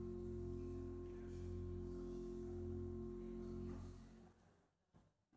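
An organ plays a sustained chord that fades out.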